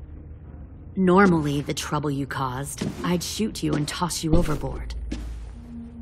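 A young woman speaks in a low, threatening voice close by.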